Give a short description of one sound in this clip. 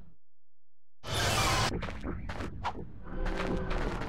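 A game character's footsteps and effects clatter outdoors.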